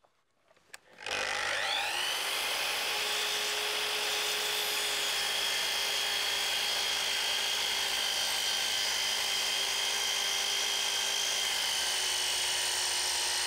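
A power saw whines loudly as it spins up and runs steadily.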